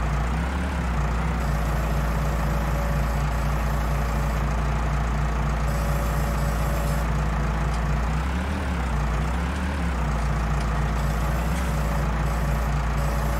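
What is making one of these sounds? A tractor engine rumbles steadily and revs up briefly now and then.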